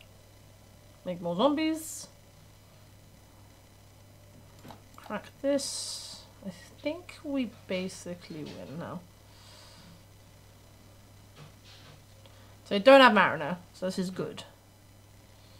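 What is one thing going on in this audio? A young woman talks calmly into a microphone, close by.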